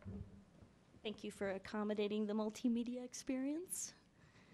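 A woman speaks into a microphone in a calm, clear voice.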